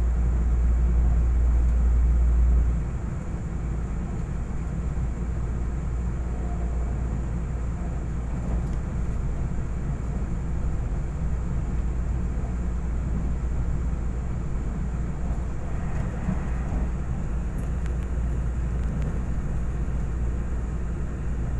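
A train rumbles along steadily, heard from inside a carriage.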